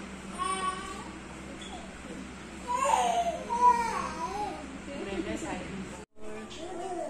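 A young child whines and cries close by.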